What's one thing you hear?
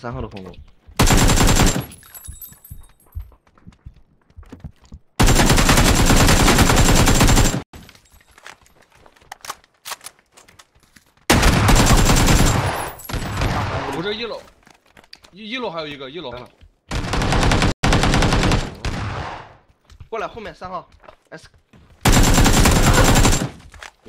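Automatic gunfire rattles in loud, rapid bursts.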